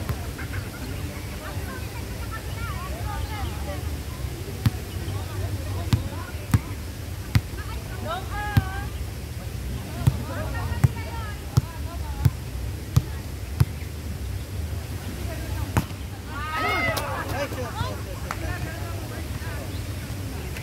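Children shout and call out to one another outdoors.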